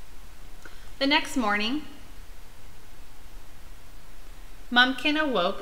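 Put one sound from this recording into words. A young woman reads aloud close by in an expressive, sing-song voice.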